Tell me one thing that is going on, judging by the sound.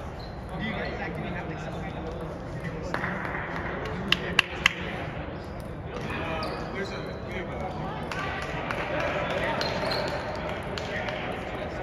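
A table tennis ball clicks back and forth between paddles and table in a large echoing hall.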